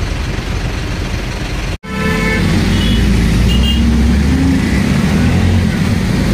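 An auto rickshaw engine rattles and drones steadily.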